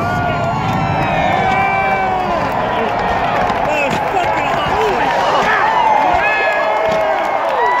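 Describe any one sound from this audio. Fireworks pop and crackle overhead.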